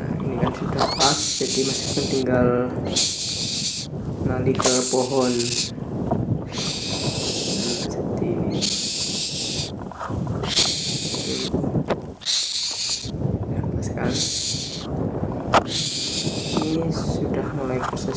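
Young birds of prey screech in loud, harsh, hissing bursts close by.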